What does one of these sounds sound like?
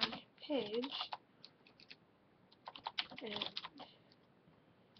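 A young woman speaks quietly and close to a microphone.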